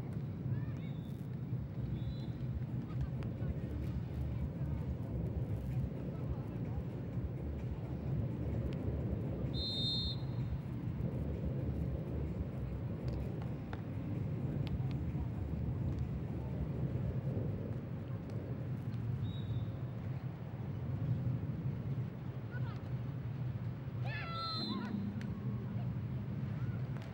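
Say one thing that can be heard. A volleyball is hit with dull thumps.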